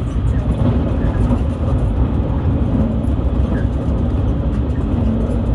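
A car rumbles steadily along a road from inside the cabin.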